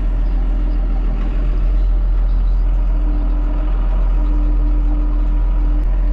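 A tractor engine rumbles steadily up close.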